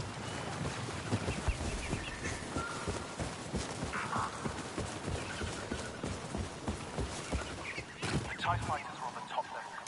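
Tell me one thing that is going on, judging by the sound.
Rapid gunfire crackles and bangs close by.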